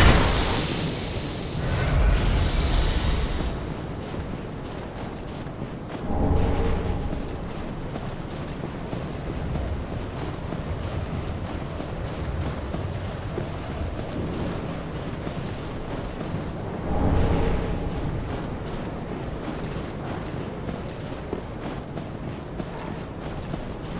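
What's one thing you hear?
Armoured footsteps crunch on snow.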